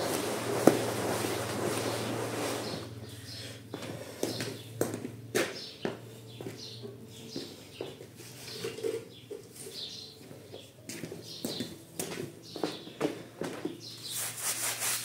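A stiff brush scrubs a wet, foamy stone surface.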